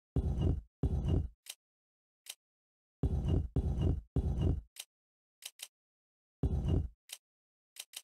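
Heavy stone discs grind as they turn.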